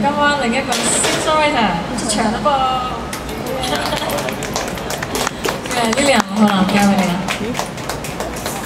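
A young woman sings into a microphone, heard through a loudspeaker.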